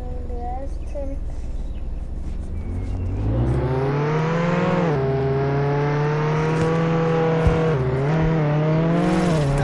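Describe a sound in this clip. A car engine revs and hums as it speeds along.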